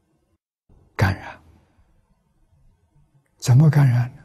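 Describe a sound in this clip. An elderly man speaks calmly and slowly into a microphone.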